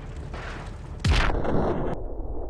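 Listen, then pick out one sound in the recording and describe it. A plane crashes with a loud impact.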